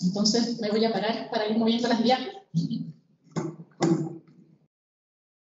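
A woman speaks into a microphone over loudspeakers in a large room.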